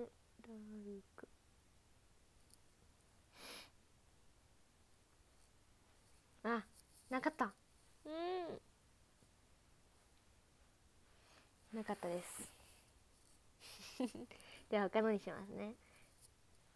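A young woman speaks close to a microphone in short, playful bursts.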